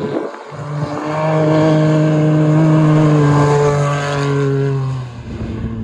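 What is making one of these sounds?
Studded tyres scrape and spray over ice.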